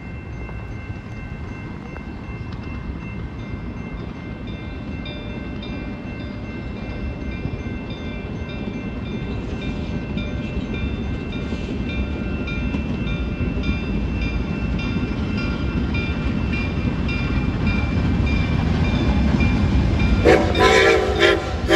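A steam locomotive chugs closer, growing steadily louder.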